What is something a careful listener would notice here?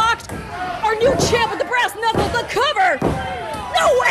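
Bodies thud on a wrestling mat.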